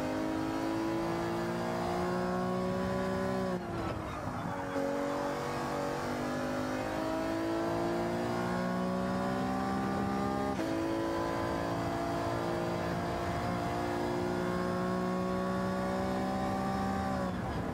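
A racing car engine roars, climbing in pitch and dropping sharply at each gear change.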